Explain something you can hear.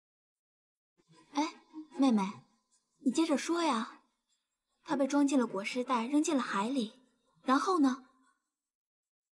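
A young woman speaks with agitation, close by.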